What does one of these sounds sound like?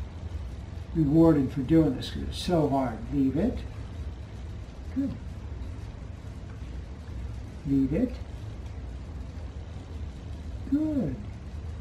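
An older man speaks calmly in short phrases nearby.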